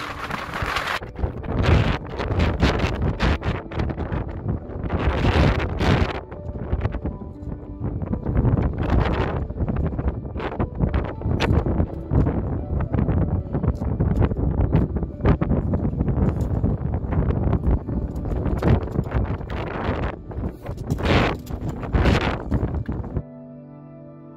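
Boots crunch and scrape on loose rocks.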